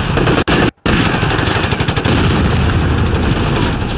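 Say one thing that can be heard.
A shell explodes with a heavy boom.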